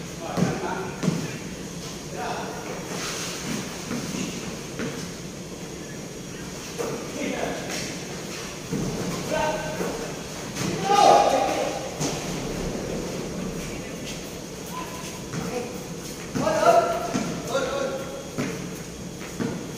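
Young men shout and call out to each other in a large echoing hall.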